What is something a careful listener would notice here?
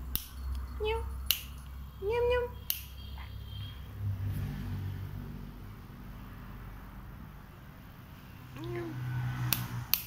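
Kittens mew with short, high cries.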